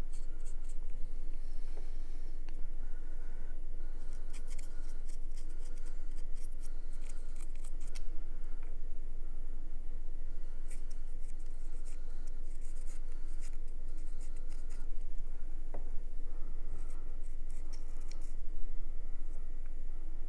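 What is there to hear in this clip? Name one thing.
A paintbrush taps and scrapes inside a small paint pot.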